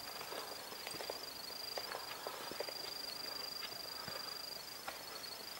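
Footsteps crunch on dry leaves along a forest path.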